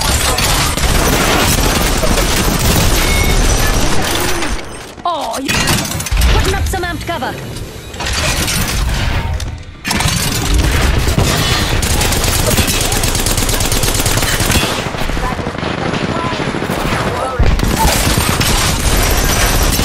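A minigun fires in rapid automatic bursts.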